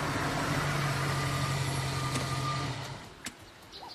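A car engine idles with a low steady hum.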